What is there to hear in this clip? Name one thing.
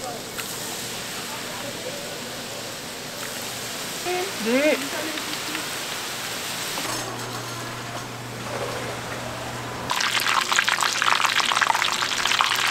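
Hot oil sizzles and crackles loudly as food fries.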